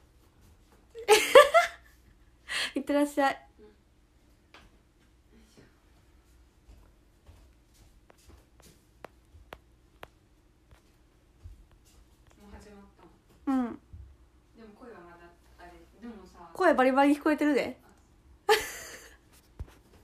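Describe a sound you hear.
A young woman laughs out loud.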